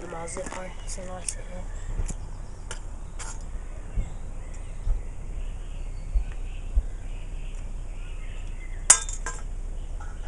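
Small metal objects clink and tap as they are handled.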